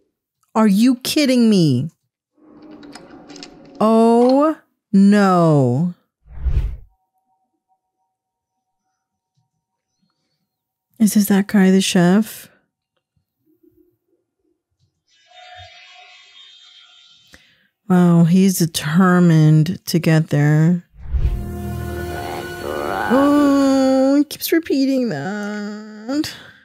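A woman speaks calmly and close into a microphone.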